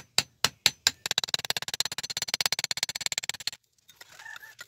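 A metal rod grinds and scrapes against stone.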